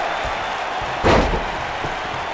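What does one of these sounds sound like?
A body slams hard onto a wrestling mat.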